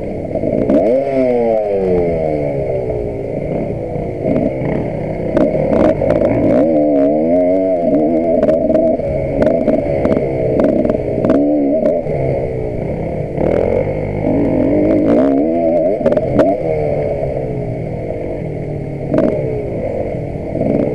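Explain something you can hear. A dirt bike engine revs hard up close, rising and falling in pitch.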